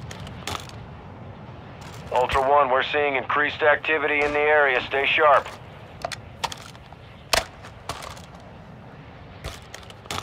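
A gun's metal parts clack and rattle as it is handled.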